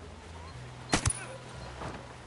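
A suppressed gunshot cracks once.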